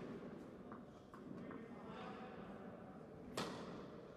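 A tennis ball bounces on the court a few times.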